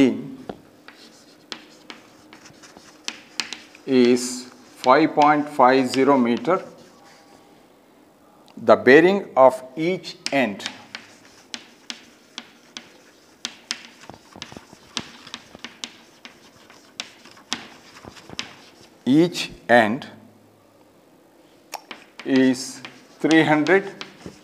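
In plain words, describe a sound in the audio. Chalk taps and scratches on a blackboard.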